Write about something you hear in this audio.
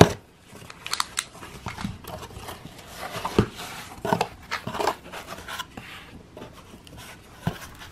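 Cardboard flaps rustle and scrape as a box is opened by hand.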